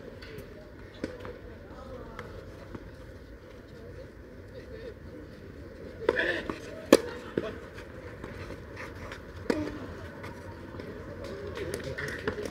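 Tennis balls are struck with rackets outdoors.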